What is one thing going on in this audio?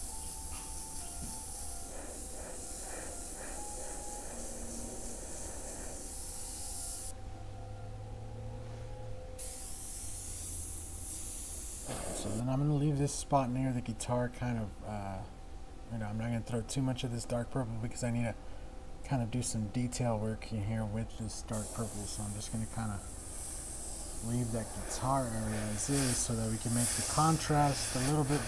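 An airbrush hisses as it sprays paint.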